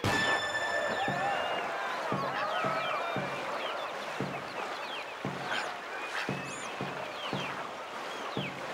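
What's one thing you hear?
A paddle splashes through water in quick, regular strokes.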